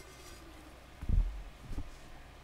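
An object is set down on a table with low thumps.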